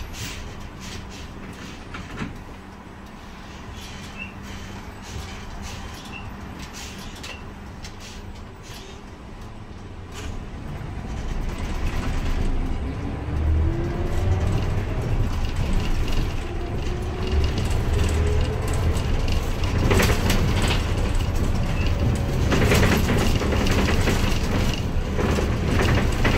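A bus engine hums steadily and grows louder as the bus speeds up.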